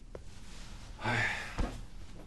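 Hands thump down on a hard counter.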